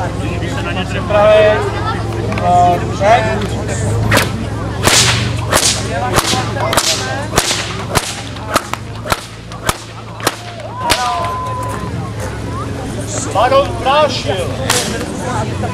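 A group of people outdoors talk and call out.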